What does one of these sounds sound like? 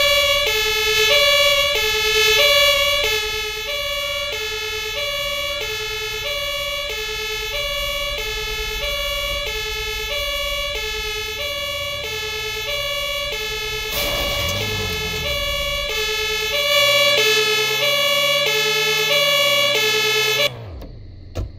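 A two-tone siren wails steadily and then stops abruptly.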